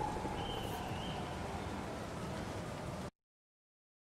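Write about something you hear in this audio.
A bag rustles as it is lifted.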